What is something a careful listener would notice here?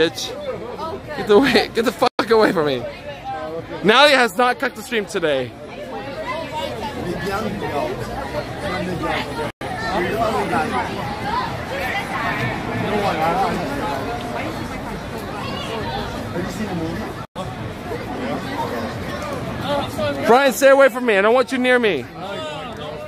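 Several young people talk and chatter close by.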